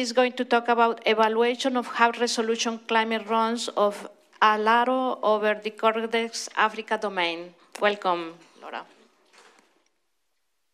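A woman speaks steadily through a microphone in a large hall.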